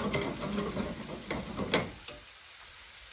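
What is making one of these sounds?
A metal spoon stirs and scrapes in a frying pan.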